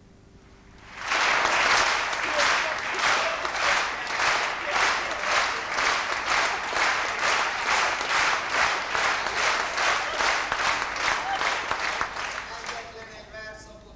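An audience claps in steady rhythm in a large hall.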